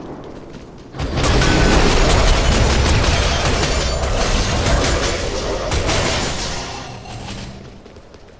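A loud explosion booms and crackles with fiery blasts.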